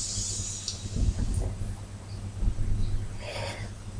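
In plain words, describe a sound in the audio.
A man exhales a long breath of vapour.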